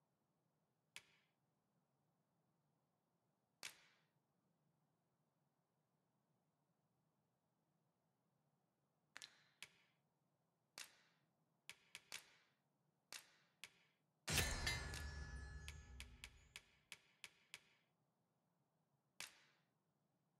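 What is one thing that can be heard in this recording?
Short soft menu clicks tick now and then.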